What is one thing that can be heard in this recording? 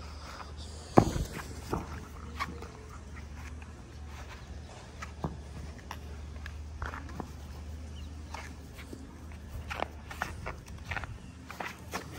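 A ball thumps on grass.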